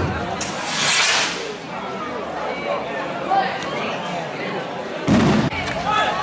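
A crowd of men and women chatters and calls out outdoors.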